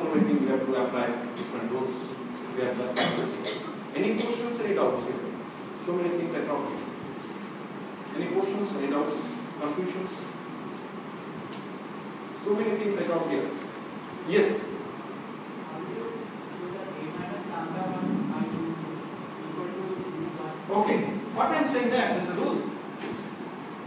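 A man lectures calmly in a room with a slight echo, pausing often.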